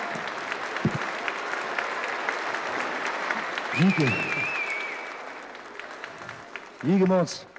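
An audience applauds and cheers in a large echoing hall.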